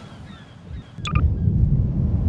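A short click sounds as a menu opens.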